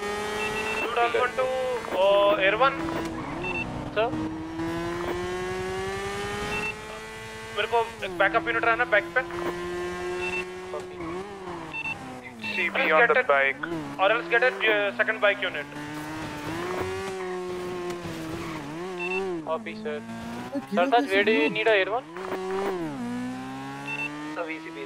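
A motorcycle engine hums and revs up and down.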